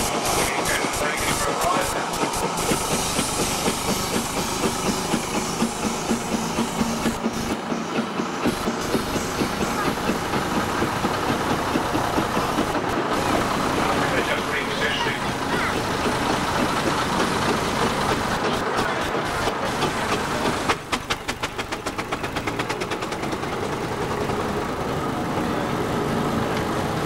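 A steam traction engine chuffs with a rapid rhythmic beat.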